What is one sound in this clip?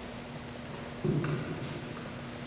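A metal cup knocks softly as it is set down on a table.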